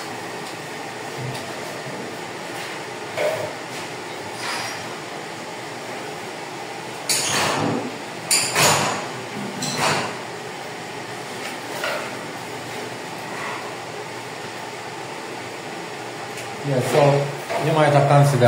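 A sponge rubs against wall tiles.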